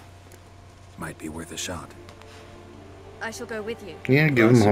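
An elderly man speaks gruffly.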